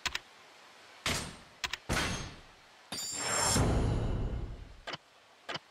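A soft whoosh sweeps as a menu closes.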